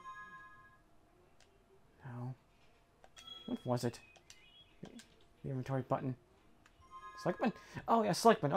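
Short electronic menu blips chime.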